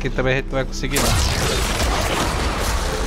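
Magic blasts crackle and burst in a fight.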